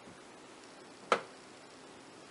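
A wooden cutting frame clunks as it is moved.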